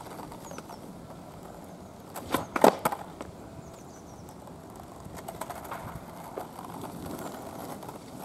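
Skateboard wheels roll and rumble on asphalt.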